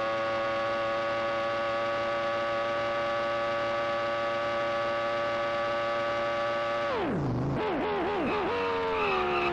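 A video game racing car engine whines steadily at high pitch, then drops sharply in pitch as the car slows.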